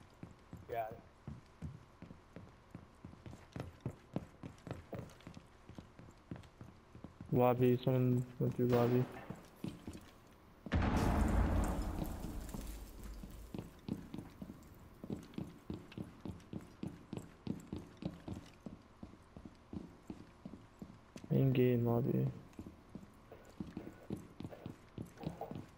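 Footsteps thud steadily on hard floors.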